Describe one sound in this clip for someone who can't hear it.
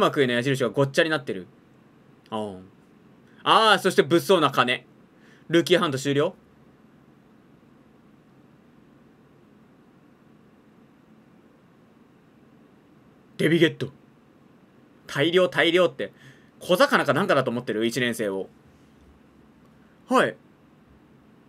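A young man talks with animation, close to a microphone, in short bursts.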